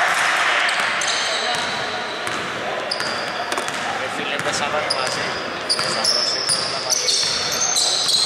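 Sneakers squeak sharply on a hardwood court in an echoing hall.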